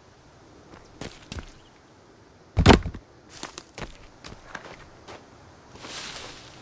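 Footsteps crunch and shuffle over twigs and leaves.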